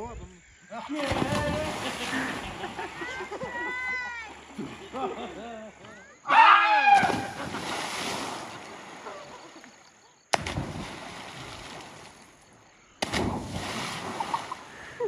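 Water splashes loudly as people jump into a river.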